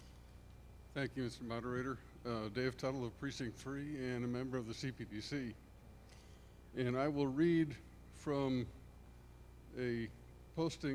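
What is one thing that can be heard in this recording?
An elderly man speaks calmly into a microphone, reading out over loudspeakers.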